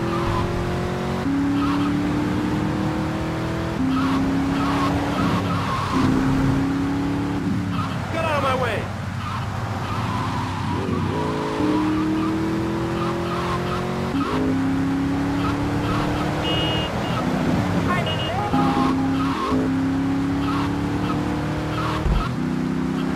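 A sports car engine roars, climbing in pitch and dropping back with each gear change.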